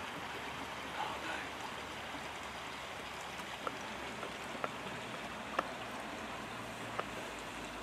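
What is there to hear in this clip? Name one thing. An otter paddles softly through the water.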